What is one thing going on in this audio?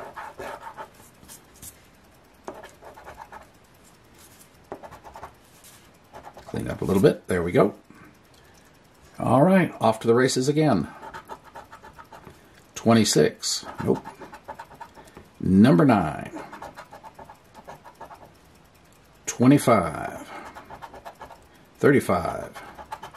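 A coin scrapes and scratches across a card.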